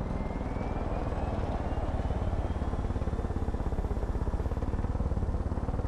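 A small helicopter's rotor thumps rapidly and its engine drones steadily up close.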